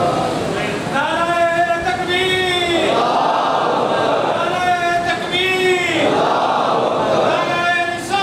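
A man chants loudly through a microphone, heard over loudspeakers.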